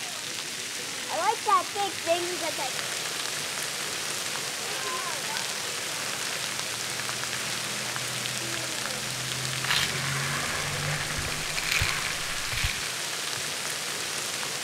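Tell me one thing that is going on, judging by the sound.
Fine water mist hisses from spray nozzles outdoors.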